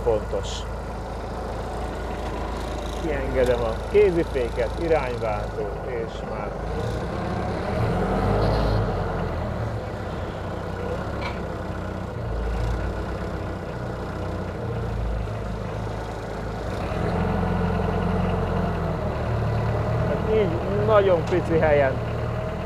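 A forklift engine rumbles steadily nearby.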